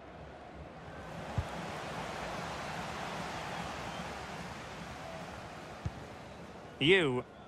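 A stadium crowd roars and cheers.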